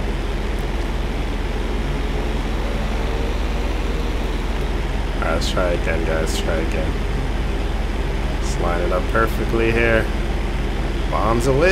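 Propeller plane engines drone steadily.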